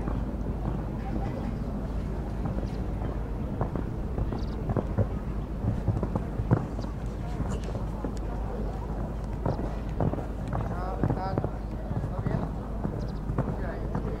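A horse's hooves thud on soft ground at a canter.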